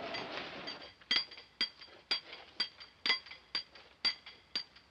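Gunshots ring out one after another in an echoing space.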